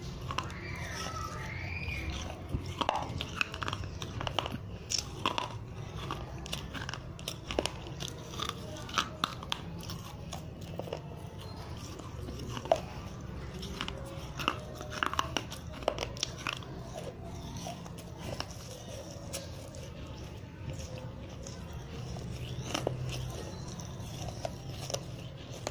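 A young person whispers softly close to a microphone.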